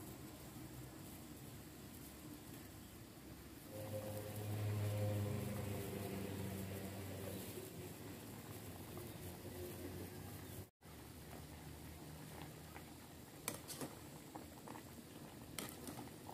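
A metal utensil clinks and scrapes against a pot.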